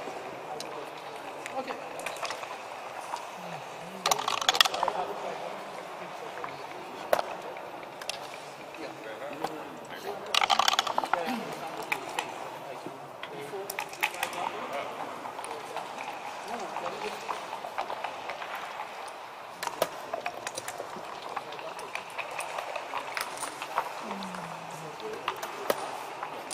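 Checkers click and clack as a hand moves them on a wooden board.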